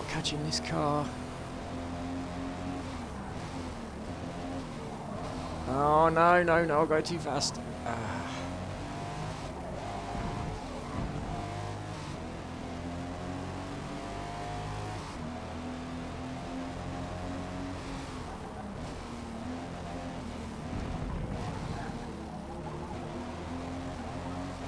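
A car engine roars and revs up and down as the car races.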